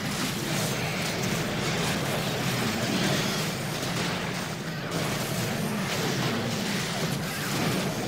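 Game creatures screech and clash in a fight.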